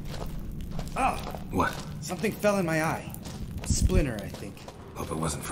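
A man speaks in a low, gruff voice.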